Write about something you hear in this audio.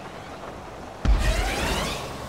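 A loud thump sounds as a cart lands.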